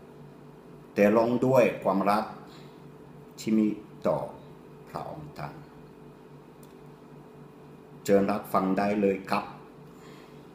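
A man speaks calmly, close to the microphone, in short phrases with pauses.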